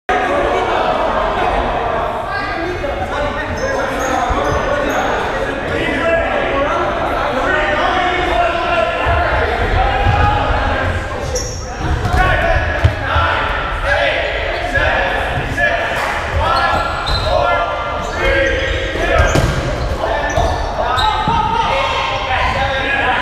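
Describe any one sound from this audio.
Several people talk and shout with animation in a large echoing hall.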